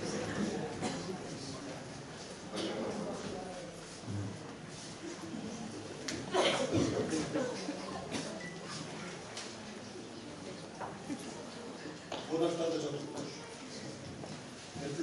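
A man speaks loudly from a stage in a large echoing hall.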